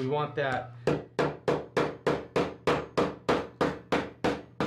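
A hammer taps rapidly and steadily on metal mesh.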